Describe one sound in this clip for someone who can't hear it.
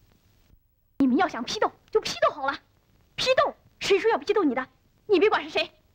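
A boy speaks with animation to another boy nearby.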